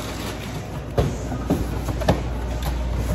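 Cardboard thumps to the floor.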